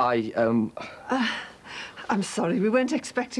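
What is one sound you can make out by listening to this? A middle-aged woman speaks calmly.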